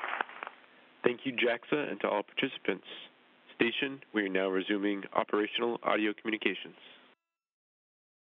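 A man talks calmly into a headset, heard over a radio link.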